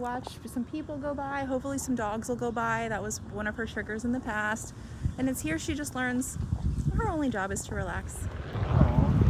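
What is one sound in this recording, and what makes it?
A woman talks in a lively voice close to the microphone.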